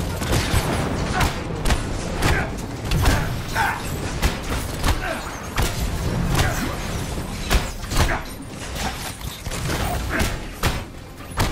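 Punches and blasts hit with sharp thuds in quick succession.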